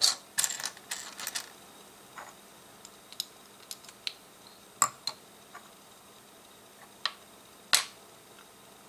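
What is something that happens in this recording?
Plastic toy bricks click and clatter against each other on a table.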